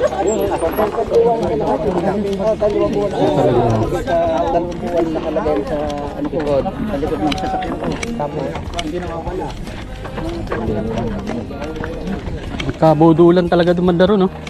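Several men talk and chat nearby outdoors.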